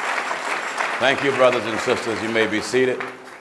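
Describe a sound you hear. A man speaks firmly into a microphone.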